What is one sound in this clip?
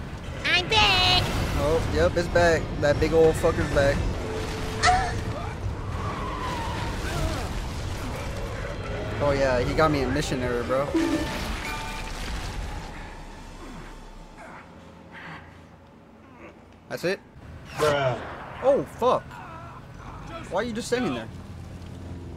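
A young man talks excitedly into a microphone, shouting and laughing.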